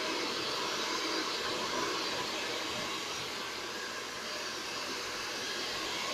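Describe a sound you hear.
A hair dryer blows air with a steady, loud whoosh.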